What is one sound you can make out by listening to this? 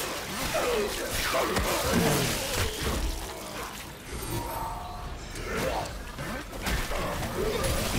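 Flesh squelches wetly as a creature is hacked apart.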